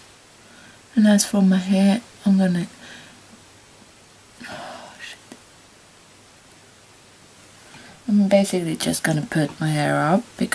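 A young woman talks close to the microphone in short bursts.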